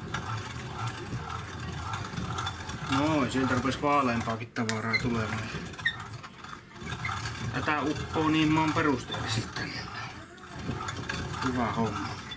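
A hand-cranked meat grinder squishes and churns as it grinds meat.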